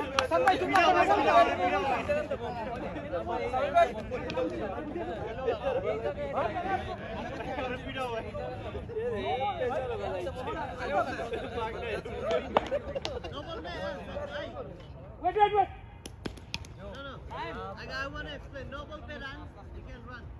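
A crowd of men talks and calls out nearby outdoors.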